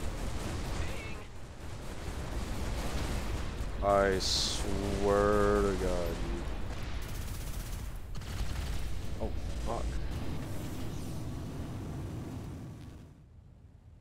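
A spacecraft engine roars loudly.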